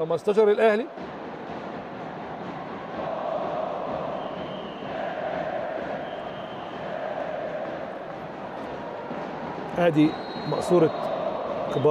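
A crowd chants and cheers in a large echoing hall.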